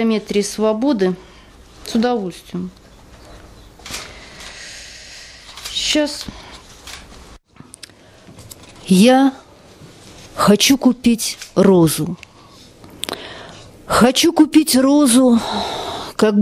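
A woman reads aloud expressively into a microphone, with pauses between lines.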